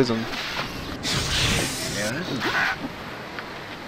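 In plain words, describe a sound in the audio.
Weapon blows land in a fantasy game battle.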